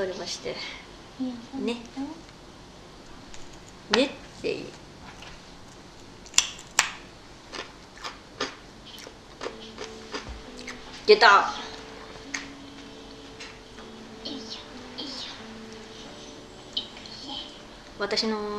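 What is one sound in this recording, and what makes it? A young woman speaks softly and laughs close by.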